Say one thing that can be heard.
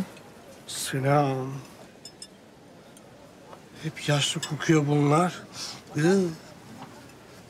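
A man speaks in a playful, expressive voice nearby.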